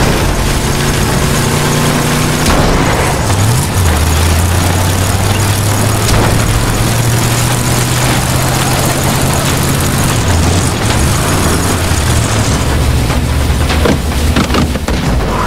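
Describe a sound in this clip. Tyres crunch over gravel and dirt.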